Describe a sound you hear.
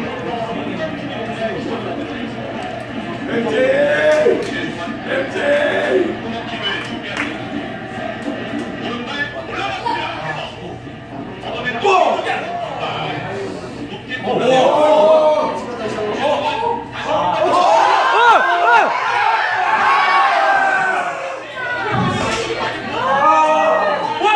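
A crowd of young men and women chatters in a busy room.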